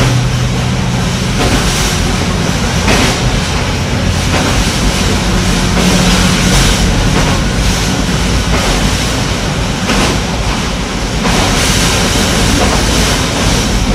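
Train wheels clatter rhythmically on the rail joints.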